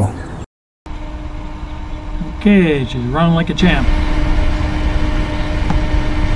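A small cooling fan whirs with a steady low hum.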